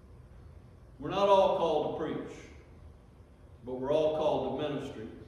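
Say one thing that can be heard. An elderly man speaks slowly into a microphone in a room with a slight echo.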